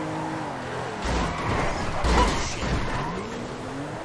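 A car crashes with a loud thud and scraping.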